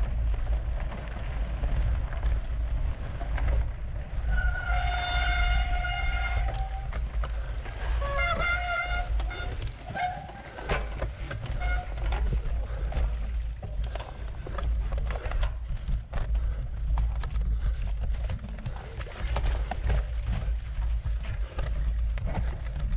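Bicycle parts rattle and clatter over bumps.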